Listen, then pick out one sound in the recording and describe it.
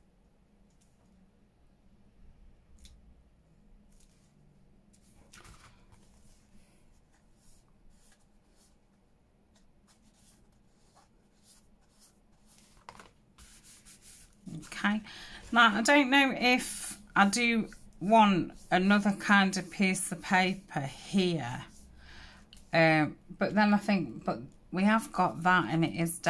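Stiff paper rustles and scrapes as it is handled and turned over.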